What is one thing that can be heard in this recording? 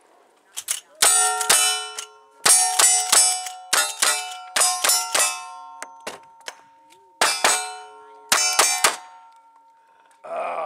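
Steel targets ring out with a clear metallic clang after the hits.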